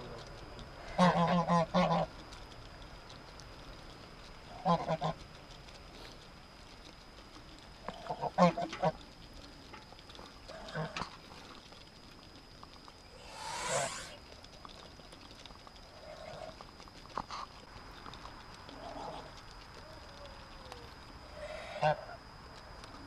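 Ducks quack in short bursts nearby.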